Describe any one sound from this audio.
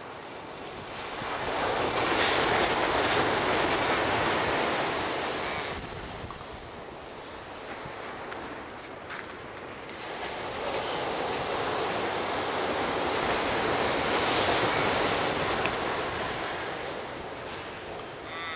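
Wind blows in strong gusts outdoors.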